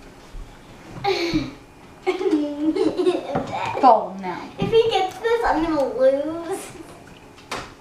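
A teenage boy talks and laughs excitedly nearby.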